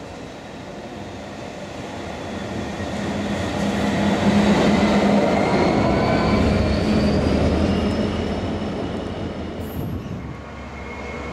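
A diesel train approaches, roars past at speed and fades.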